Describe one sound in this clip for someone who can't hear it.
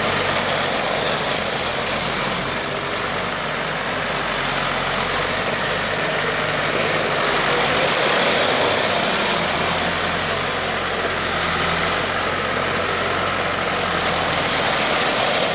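Steel tracks clatter and squeak over concrete.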